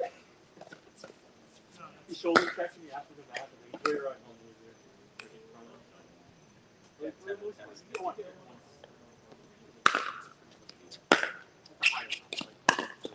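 Paddles pop sharply against a plastic ball, back and forth.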